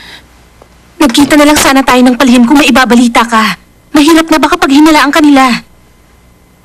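A woman speaks up with alarm, close by.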